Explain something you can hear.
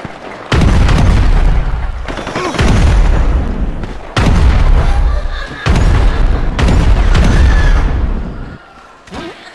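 A rifle fires in loud, rapid bursts.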